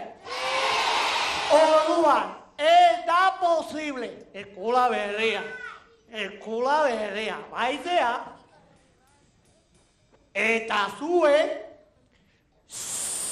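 A man speaks loudly and theatrically through a microphone in an echoing hall.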